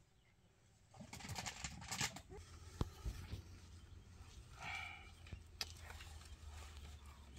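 A man talks softly to a baby nearby.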